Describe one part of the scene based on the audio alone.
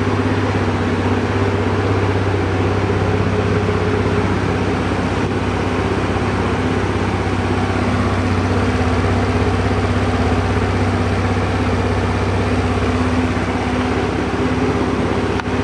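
A scooter engine idles with a steady low rumble close by.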